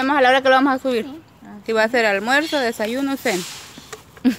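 A young girl talks close by in a lively, sing-song voice.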